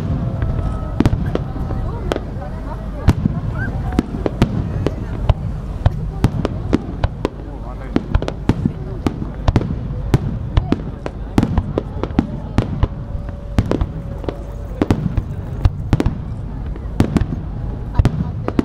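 Fireworks burst with loud, sharp bangs and booms.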